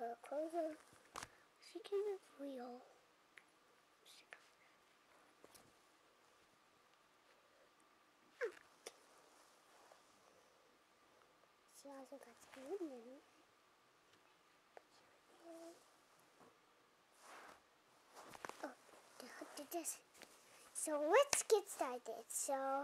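A young girl talks and sings playfully close by.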